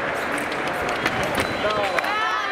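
Fencing blades clash sharply.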